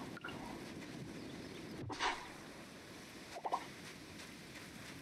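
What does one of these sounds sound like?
Gentle waves wash onto a sandy shore.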